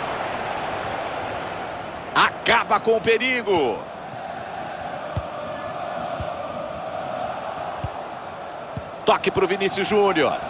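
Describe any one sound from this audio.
A large stadium crowd murmurs and roars steadily.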